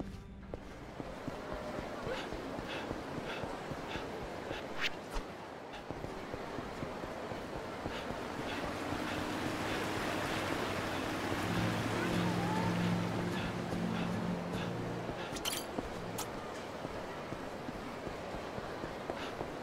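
Footsteps slap quickly on pavement as a man runs.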